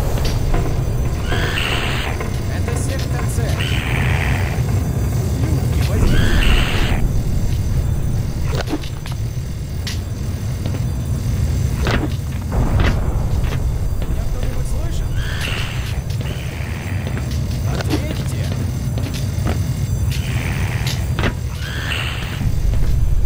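A creature screeches in short, shrill bursts.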